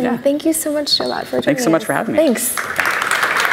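A woman speaks brightly into a microphone.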